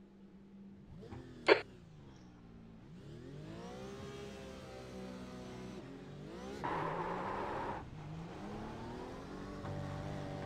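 A race car engine revs up and shifts through the gears.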